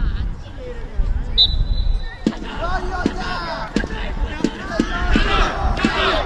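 Lacrosse sticks clack together at a faceoff.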